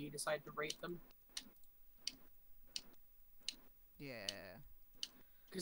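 A young man talks casually, close to a microphone.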